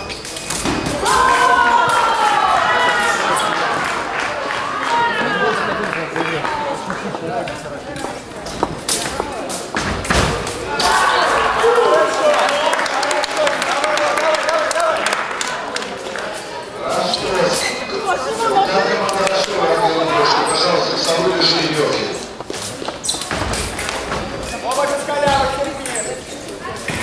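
Men and women talk in a large echoing hall.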